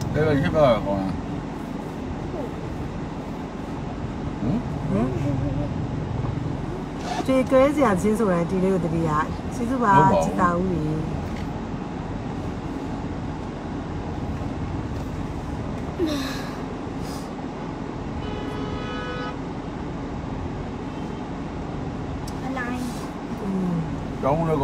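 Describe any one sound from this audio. A car engine hums steadily inside a car.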